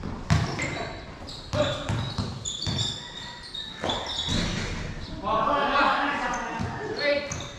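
Children shout and chatter in the distance.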